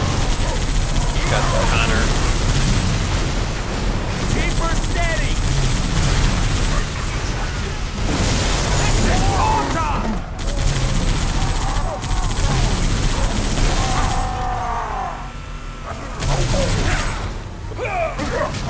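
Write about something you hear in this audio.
A vehicle engine roars steadily as it drives over rough ground.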